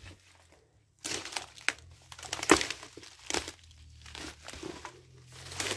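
Leafy plants rustle and swish as someone pushes through dense undergrowth.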